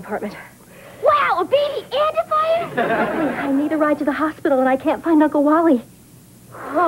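A woman screams and shouts excitedly.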